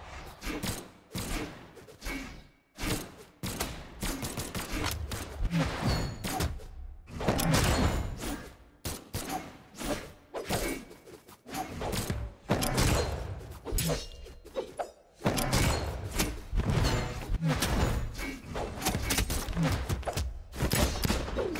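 Fighting game characters clash with hits, swooshes and blasts.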